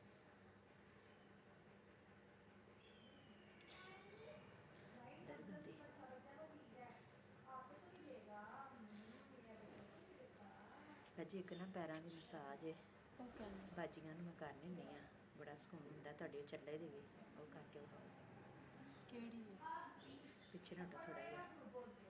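Hands rub and knead a bare foot softly.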